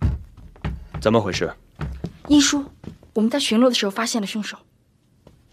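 A young woman speaks firmly, close by.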